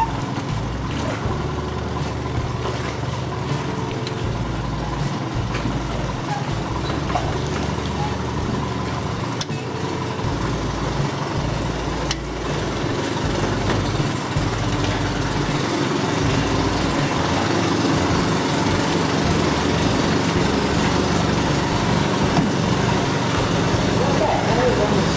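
A boat's engine hums steadily on the water.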